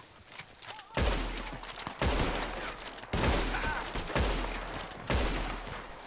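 A rifle fires several shots.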